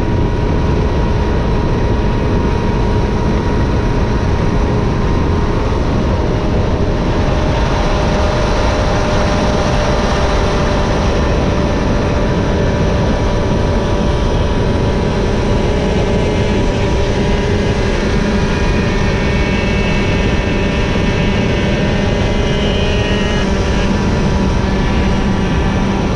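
Wind roars loudly over the rider.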